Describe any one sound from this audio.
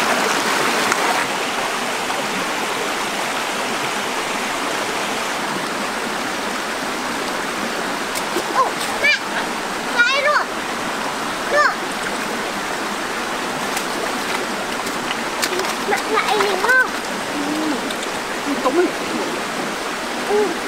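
A shallow stream rushes and gurgles over rocks.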